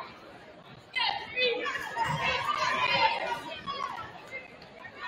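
Young women shout a cheer in unison.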